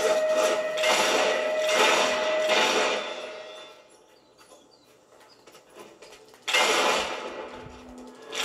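Video game battle sounds play loudly through a television speaker.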